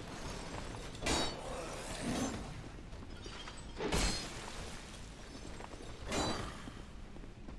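Heavy weapon blows swish and thud in a video game.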